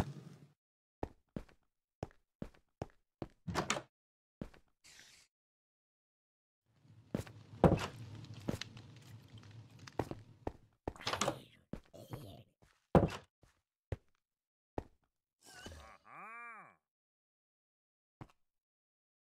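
Footsteps tap on hard ground.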